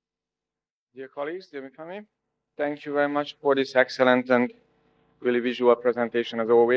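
A man speaks calmly into a microphone over a loudspeaker in a large hall.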